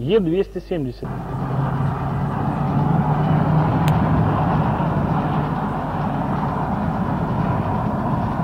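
A car engine hums steadily as tyres roll over a wet road.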